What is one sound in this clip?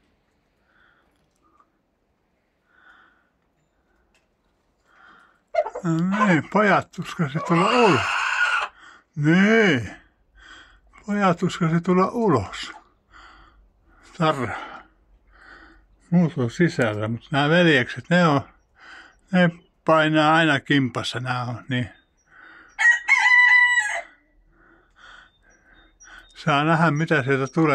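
Chickens cluck softly close by.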